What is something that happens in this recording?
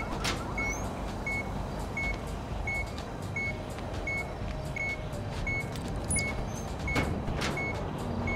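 Hands work at a metal panel with clicks and knocks.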